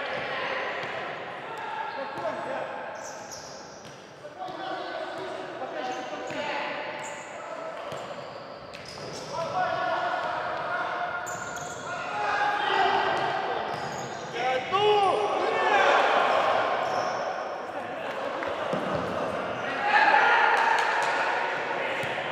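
Men shout to each other in a large echoing hall.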